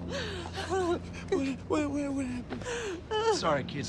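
A woman sobs close by.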